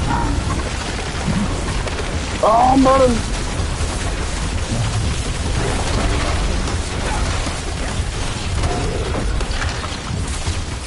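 Fiery explosions boom and rumble in a video game.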